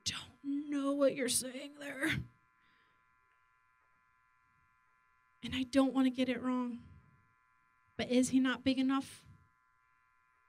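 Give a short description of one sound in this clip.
A woman speaks calmly into a microphone, with pauses.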